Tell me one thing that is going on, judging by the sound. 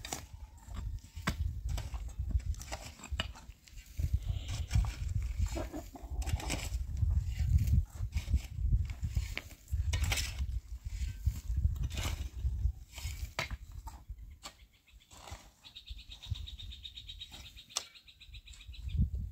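A shovel scrapes and scoops through loose dirt and stones.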